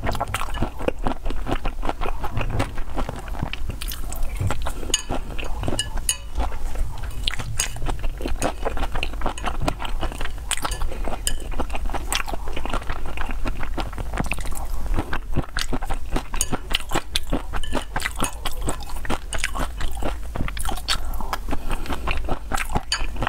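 A young woman chews food wetly and loudly close to a microphone.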